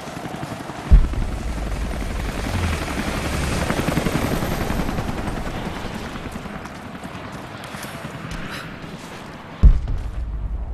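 A fire burst roars with a deep boom.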